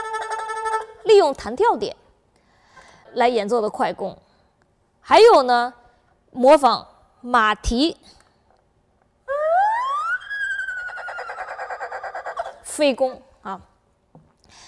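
An erhu slides up and down in short swooping phrases.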